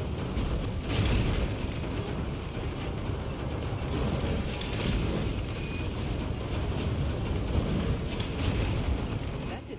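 Explosions rumble low in the distance.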